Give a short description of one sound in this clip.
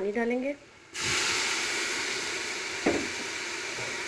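Water pours into a hot metal pot with a splashing rush.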